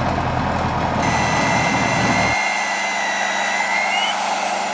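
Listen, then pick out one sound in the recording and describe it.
An electric drill whines steadily into wood.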